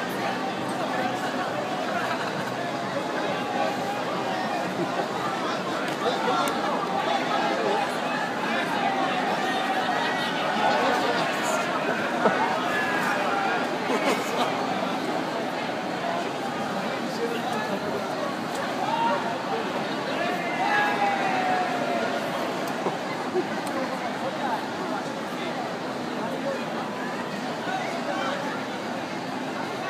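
A large crowd of men and women chatters and calls out all around, outdoors.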